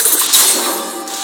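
Spell blasts and weapon hits clash in a fast video game fight.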